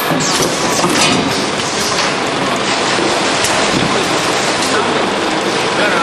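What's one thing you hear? Plastic jugs slide and bump along a metal chute.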